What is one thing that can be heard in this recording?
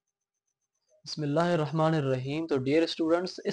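A young man speaks calmly and clearly into a nearby microphone.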